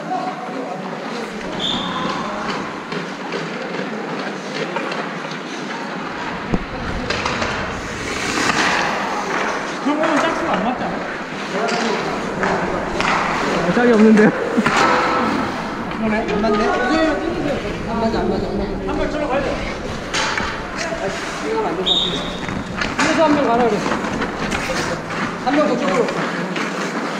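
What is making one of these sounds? Hockey sticks clack against the ice and boards.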